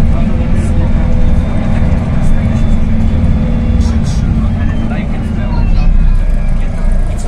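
City traffic hums outdoors in a busy street.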